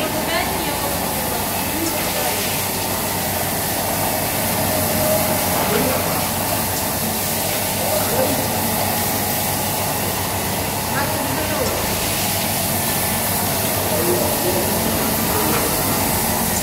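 Water sprays and splashes.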